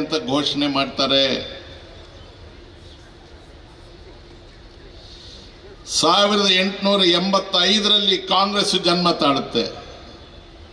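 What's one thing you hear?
An elderly man speaks forcefully into a microphone over loudspeakers, outdoors.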